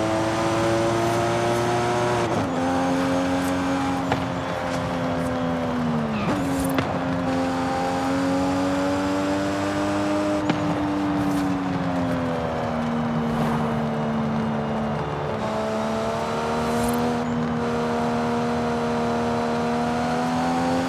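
A sports car engine roars at high speed, its pitch dropping as it shifts gears and rising again.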